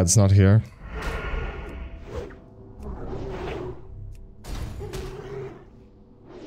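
Weapon blows strike and thud during a fight.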